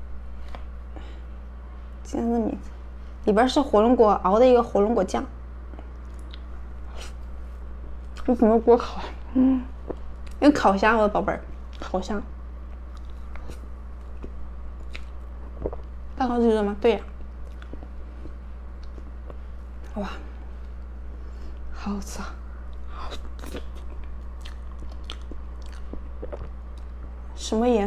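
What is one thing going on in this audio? A young woman chews soft cream cake with wet mouth sounds close to a microphone.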